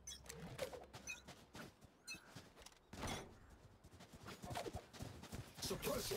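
A blade swishes through the air in quick swipes.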